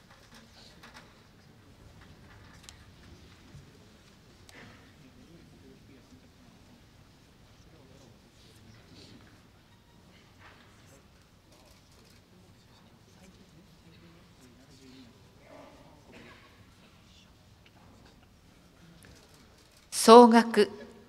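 A large audience murmurs softly in an echoing hall.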